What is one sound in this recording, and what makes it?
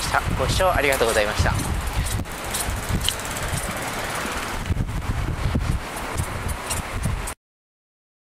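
Wind buffets the microphone with a low rumble.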